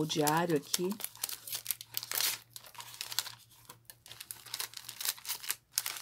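Paper and plastic rustle and crinkle as they are handled.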